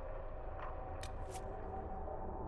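A soft menu click sounds as a selection changes.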